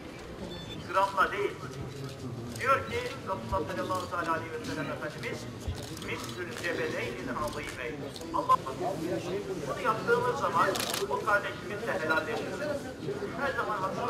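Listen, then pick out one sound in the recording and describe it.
Several men talk close by in low, agitated voices.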